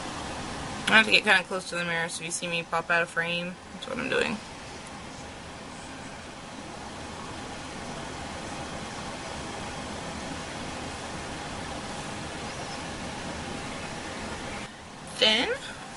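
A young woman speaks quietly close to the microphone.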